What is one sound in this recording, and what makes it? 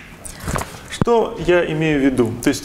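A young man speaks calmly, explaining, close by.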